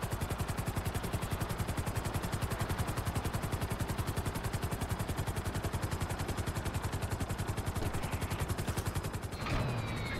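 A helicopter rotor chops rapidly in flight.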